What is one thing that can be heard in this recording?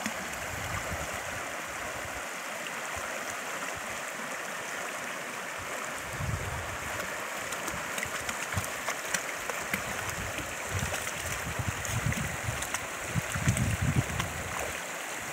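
A shallow stream ripples and babbles over stones.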